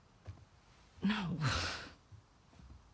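A man asks a question in a low, teasing voice.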